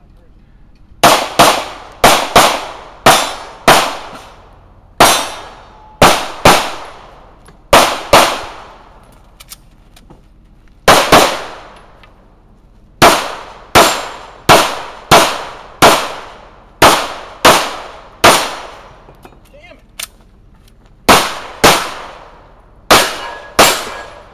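A pistol fires loud shots in quick pairs and bursts, echoing outdoors.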